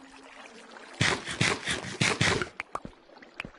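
A game character munches food in quick crunchy bites.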